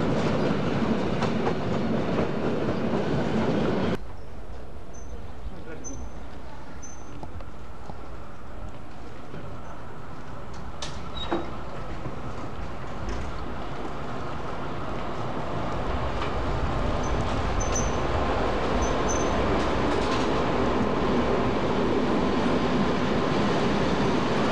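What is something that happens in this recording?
A diesel locomotive engine hums steadily and grows louder as it slowly approaches.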